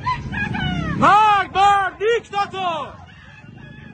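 A crowd of men and women chant loudly in short bursts.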